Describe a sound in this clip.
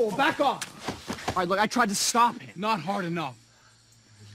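A man answers in a low, strained voice.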